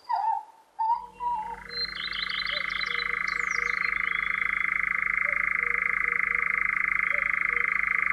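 A nightjar churrs in a long, steady buzzing trill.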